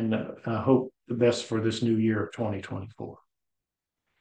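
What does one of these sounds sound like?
A middle-aged man speaks calmly and clearly into a nearby microphone.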